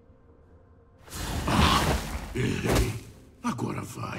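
A magical spell bursts with a bright whoosh.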